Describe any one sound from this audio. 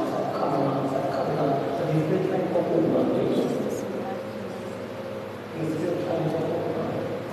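A man speaks fervently into a microphone, heard through loudspeakers in an echoing hall.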